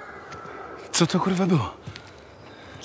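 A man asks something gruffly.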